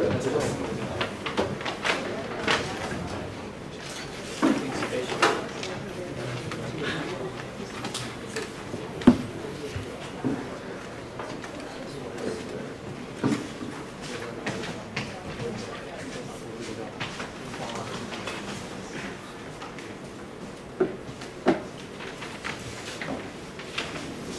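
A young man speaks calmly through a microphone in an echoing room.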